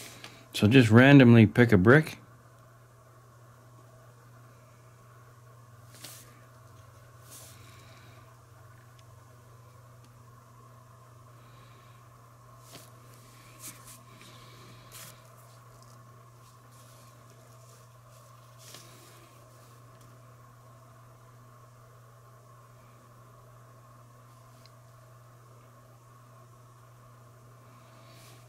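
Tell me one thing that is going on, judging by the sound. A small paintbrush dabs and scratches softly against a rough surface.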